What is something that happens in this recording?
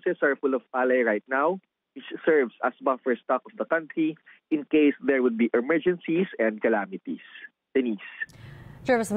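A man speaks calmly over a phone line.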